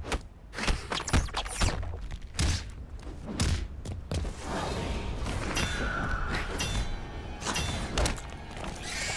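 Heavy punches and kicks land with loud thuds.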